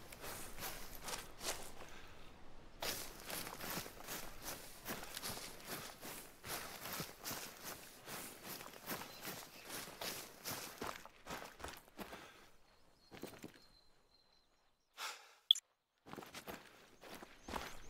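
Footsteps rustle quickly through dense leafy undergrowth.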